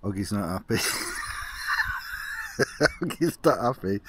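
A man laughs softly.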